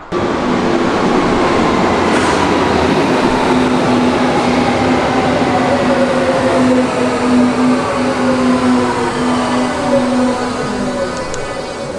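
A subway train's brakes whine, falling slowly in pitch.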